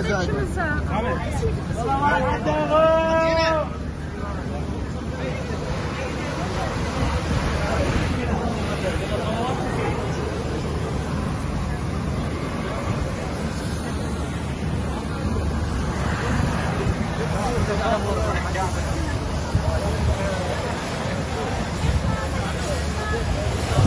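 A busy crowd murmurs and chatters outdoors.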